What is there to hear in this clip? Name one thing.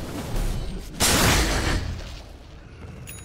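A stone tower collapses with a loud, rumbling crash.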